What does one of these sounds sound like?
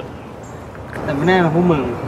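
A teenage boy answers loudly and mockingly.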